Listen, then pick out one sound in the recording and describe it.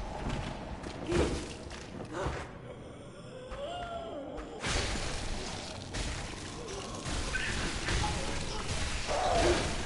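Blades slash and strike in a fight.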